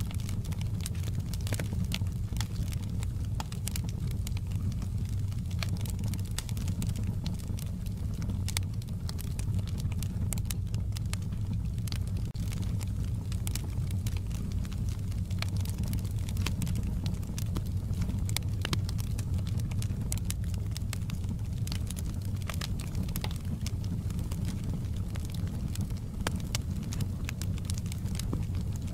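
A fire roars with a low, steady rumble.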